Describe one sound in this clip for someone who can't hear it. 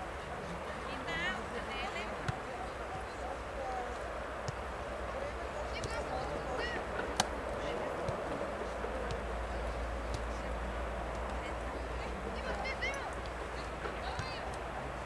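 Young players shout across an open field in the distance.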